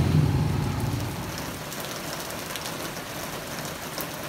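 Heavy rain pours steadily onto paving.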